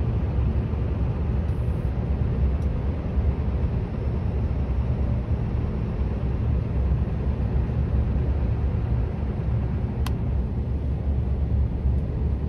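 Wind rumbles steadily and gusts against the microphone outdoors.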